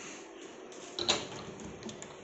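A wooden cabinet door knocks as it swings open.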